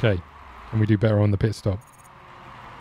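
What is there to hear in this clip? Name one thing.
A young man speaks briefly with animation into a close microphone.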